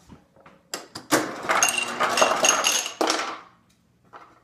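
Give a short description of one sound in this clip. A refrigerator's ice dispenser rattles crushed ice into a glass.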